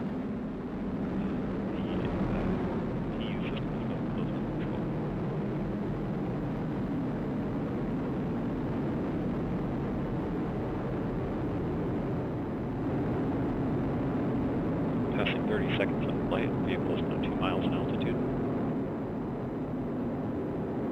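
A rocket engine roars steadily in the distance.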